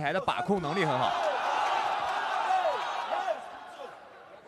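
A crowd cheers and roars loudly in a large hall.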